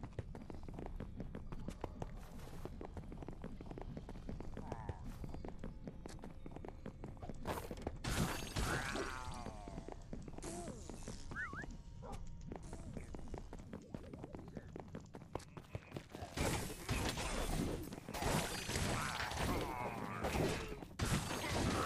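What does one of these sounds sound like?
Game combat effects crackle and burst as weapons strike enemies.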